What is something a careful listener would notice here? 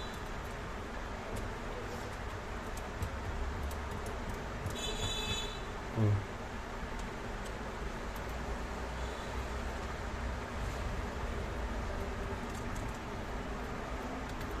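Fingers peel and rub tape on a metal panel.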